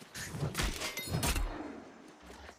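Weapon blows land with sharp, heavy impacts.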